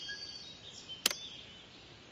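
A sharp click sounds as a button is pressed.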